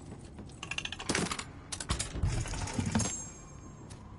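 A heavy chest lid creaks open with a clank.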